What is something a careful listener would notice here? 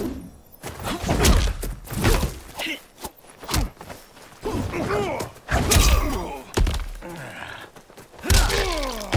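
A man grunts and shouts with effort as he fights.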